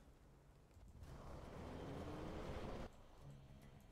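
A building explodes and fire roars.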